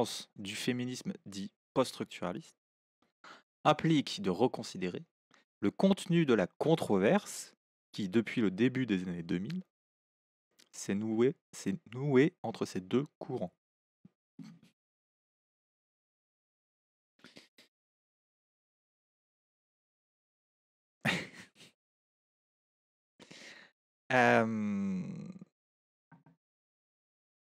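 A man speaks calmly into a close microphone, in bursts with pauses.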